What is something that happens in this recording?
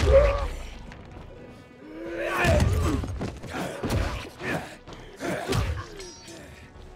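A monster growls and snarls close by.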